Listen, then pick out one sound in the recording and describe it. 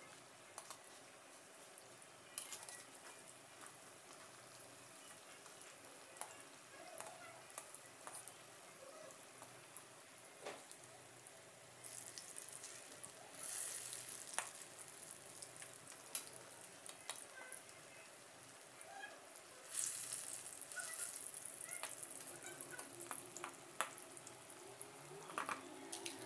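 Oil sizzles and crackles in a frying pan.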